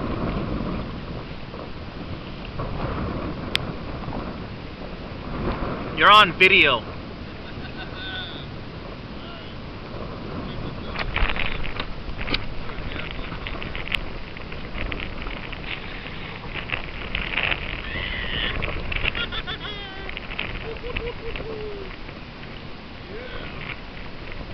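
Water laps gently against a kayak hull outdoors.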